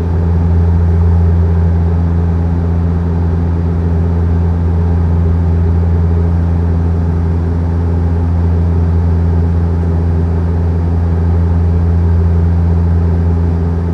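Jet engines drone steadily and low inside an airplane cabin.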